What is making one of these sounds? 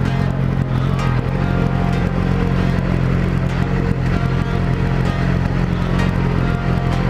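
A motorcycle engine idles with a steady low rumble close by.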